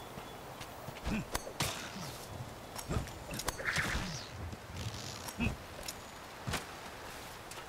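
A grappling rope whips and swings through the air.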